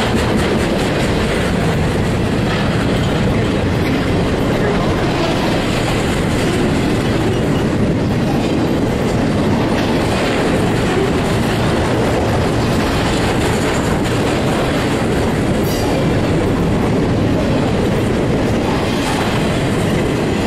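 A freight train rumbles past close by, its wheels clattering steadily on the rails.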